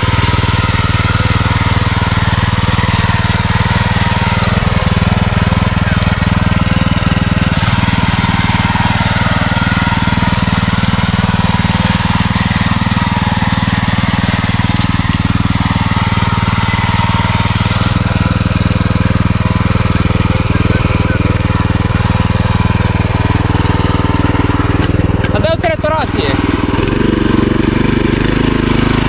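A small petrol engine on a tiller runs loudly and steadily close by.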